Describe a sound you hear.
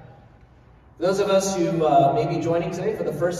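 A man speaks calmly to an audience through a microphone in a large echoing hall.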